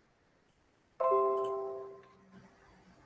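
A computer notification chime sounds once.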